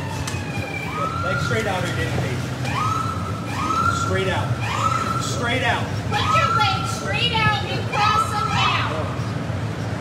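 A man shouts in distress.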